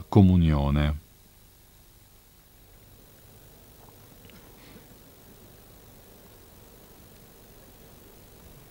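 A large crowd murmurs faintly outdoors.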